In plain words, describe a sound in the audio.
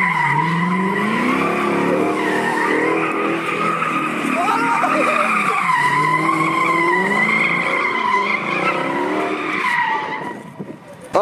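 A car engine roars and revs hard close by.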